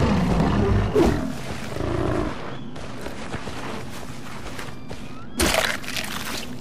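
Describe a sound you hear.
A club thumps hard against an animal.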